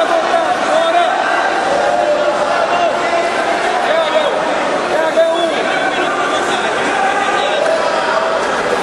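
A crowd of people talks and shouts in a large echoing hall.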